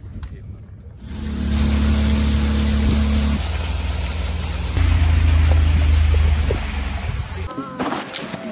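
A boat motor drones loudly.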